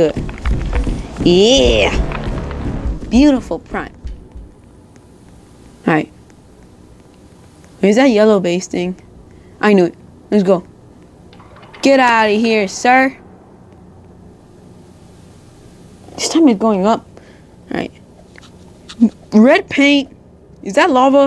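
A teenage boy talks with animation close to a microphone, in short bursts.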